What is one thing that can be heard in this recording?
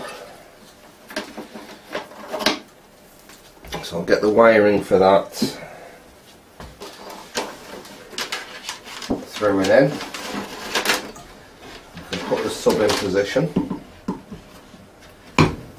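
Hands rub and tap on a wooden board.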